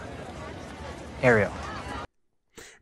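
A young man speaks briefly, sounding surprised.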